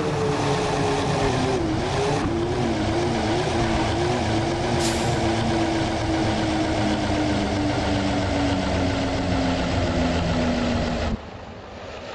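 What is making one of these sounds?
A bus engine drones loudly, its pitch slowly dropping.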